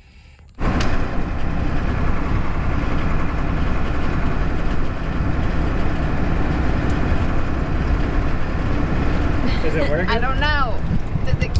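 A car engine rumbles steadily inside the car.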